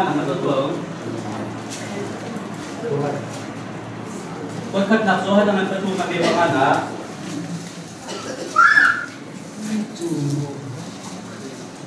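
A man speaks calmly to a room, his voice slightly echoing.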